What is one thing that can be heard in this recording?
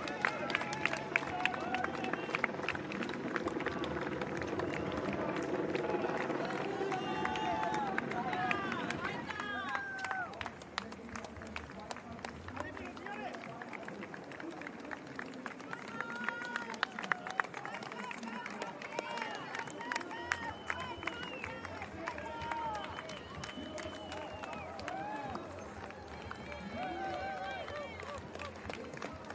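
A crowd of spectators cheers and claps along the street, outdoors.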